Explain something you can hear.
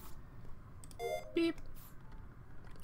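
A short electronic chime rings.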